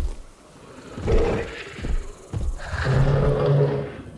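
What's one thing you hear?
A large dinosaur roars loudly.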